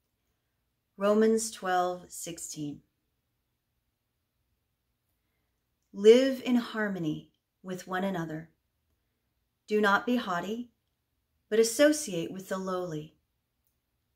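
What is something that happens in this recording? A woman speaks calmly and warmly, close to a microphone, with pauses between phrases.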